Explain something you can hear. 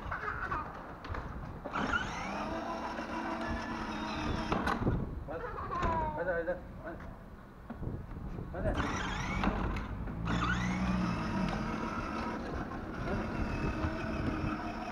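A small electric toy vehicle's motor whines.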